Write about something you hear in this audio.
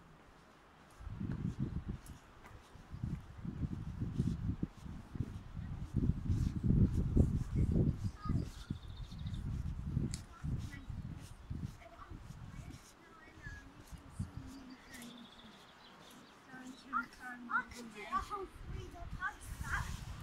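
Wind buffets outdoors in gusts.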